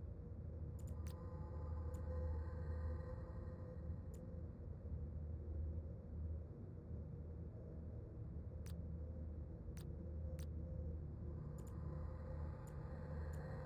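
Short interface clicks sound as votes are cast.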